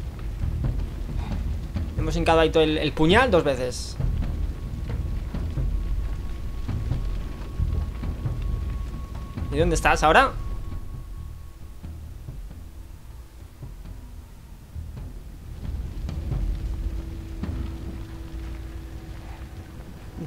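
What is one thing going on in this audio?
A fire roars and crackles in the distance.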